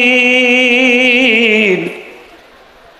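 A man chants in a long, wavering, tearful voice through a microphone, and the voice falls away.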